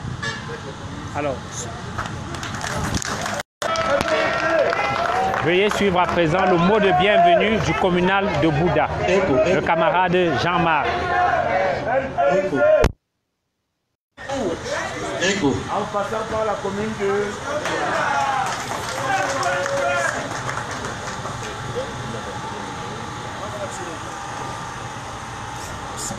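A crowd of men and women talk and call out loudly outdoors, close by.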